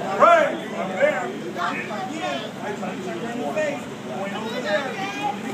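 Young children shout and call out excitedly.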